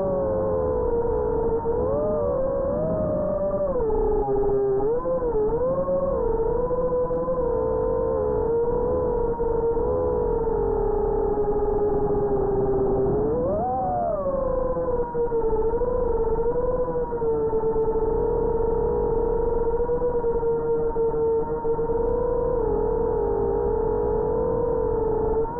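Drone propellers whine loudly and close, the pitch wavering up and down.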